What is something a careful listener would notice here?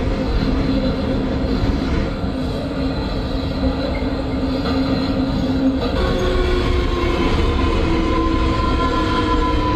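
A train rumbles steadily along the rails through a tunnel.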